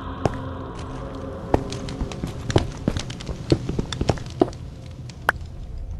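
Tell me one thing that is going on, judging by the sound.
A pickaxe chips and knocks at stone.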